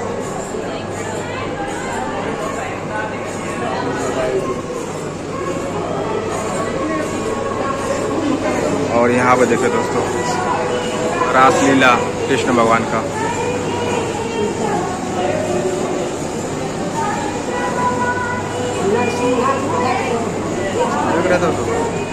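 A crowd of women and men chatter nearby indoors.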